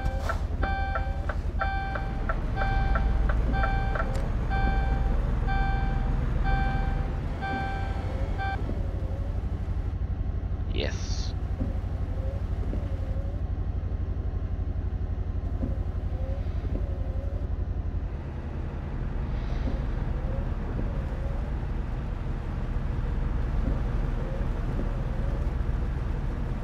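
Windscreen wipers swish back and forth at a steady pace.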